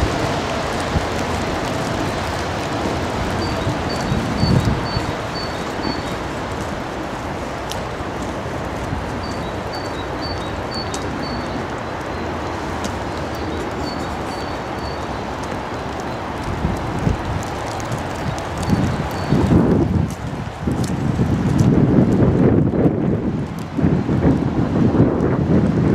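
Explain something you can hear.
Wind gusts and rumbles outdoors, buffeting loudly at times.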